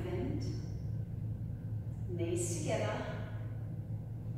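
A woman speaks calmly and clearly in a room with a slight echo.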